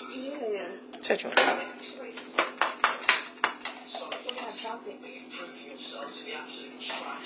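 Dishes and containers clatter as they are handled.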